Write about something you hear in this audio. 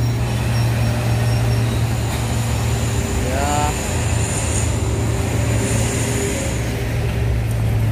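Heavy truck engines rumble loudly as trucks pass by close.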